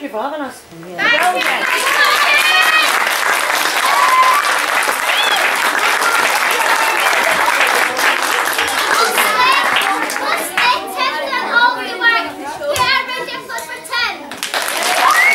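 An audience claps along.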